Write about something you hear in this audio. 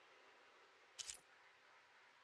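A short, sharp menu click sounds once.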